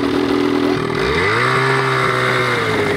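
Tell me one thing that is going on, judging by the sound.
A snowmobile engine revs up as the machine pulls away.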